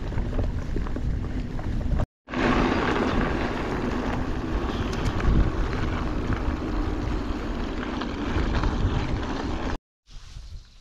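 Bicycle tyres crunch and rumble over a dirt path.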